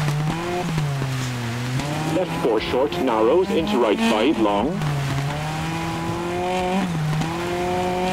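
Tyres crunch on loose gravel.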